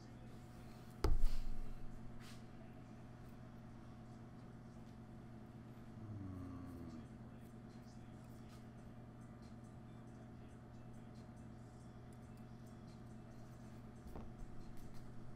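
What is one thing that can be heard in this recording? A small game piece is set down on a table with a light tap.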